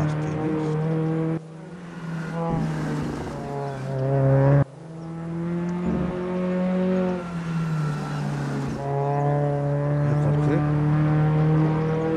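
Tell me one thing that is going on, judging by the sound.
A racing car engine roars and revs, its pitch rising and falling as it changes gear.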